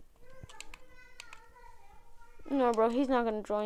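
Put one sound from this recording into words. A fishing reel clicks as a line is wound in.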